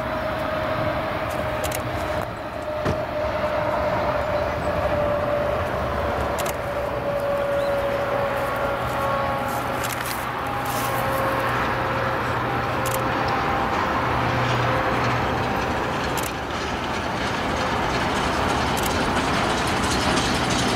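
Carriage wheels rumble and clatter on the rails.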